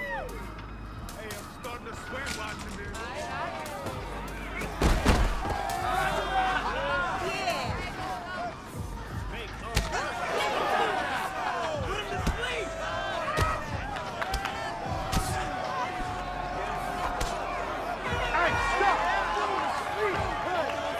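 A crowd cheers and shouts around a fight.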